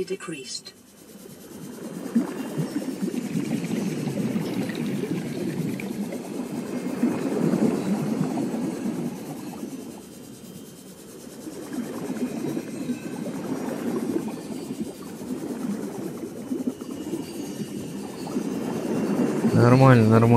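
A young man talks calmly and steadily into a close microphone.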